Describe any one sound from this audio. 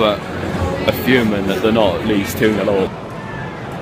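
A young man talks close by.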